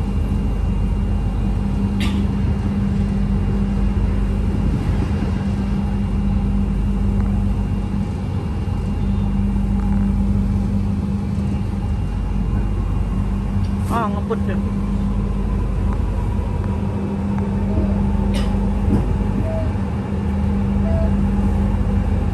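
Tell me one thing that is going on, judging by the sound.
A train's motor whines with a steady low tone.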